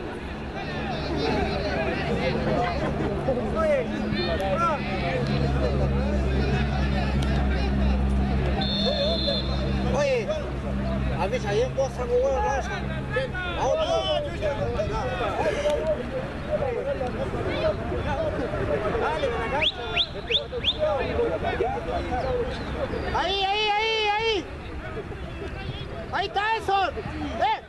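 Children shout to each other while playing football.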